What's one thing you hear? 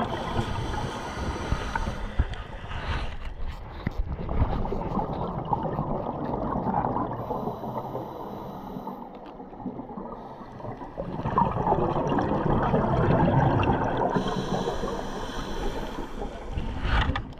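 Scuba air bubbles gurgle and rumble loudly underwater.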